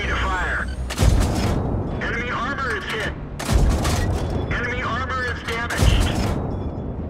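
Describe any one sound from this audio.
A tank cannon fires with loud booms.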